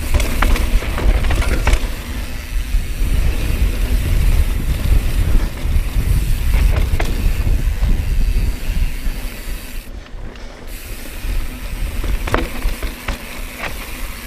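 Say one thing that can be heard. A bike's frame and chain clatter over bumps.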